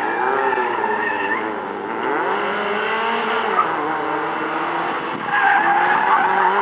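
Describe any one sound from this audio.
A small car engine revs hard, rising and falling in pitch.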